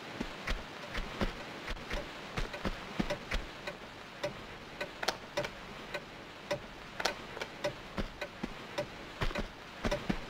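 Quick footsteps run on a stone floor.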